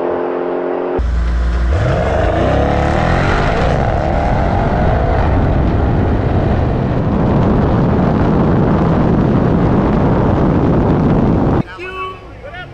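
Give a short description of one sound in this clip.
A car engine roars loudly from close by at high speed.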